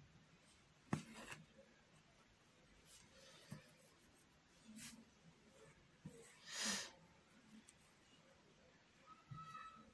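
Thread rustles and swishes as it is pulled through fabric.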